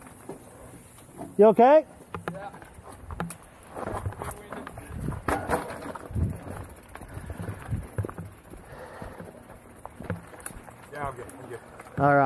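Bicycle tyres crunch and roll over a dirt trail.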